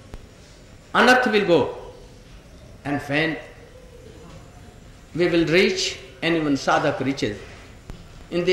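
An elderly man speaks slowly and expressively into a microphone, with pauses between phrases.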